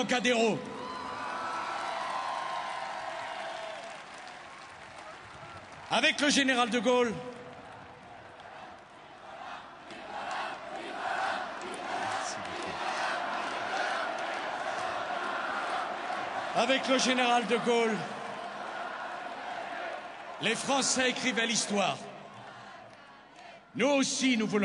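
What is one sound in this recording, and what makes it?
A large outdoor crowd cheers and chants.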